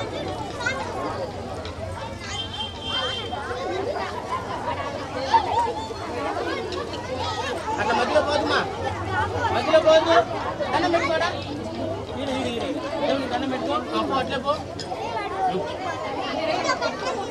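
Many children chatter and call out all around.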